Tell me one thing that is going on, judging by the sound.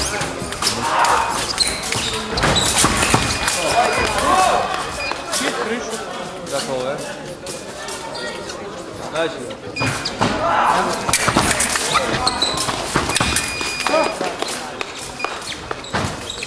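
Fencers' shoes stamp and squeak on the floor.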